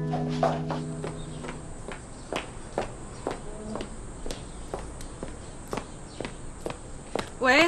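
High heels click steadily on paving stones.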